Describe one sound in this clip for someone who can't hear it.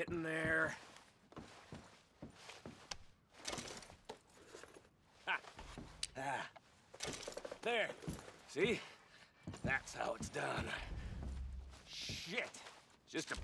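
Footsteps thud softly on a carpeted floor.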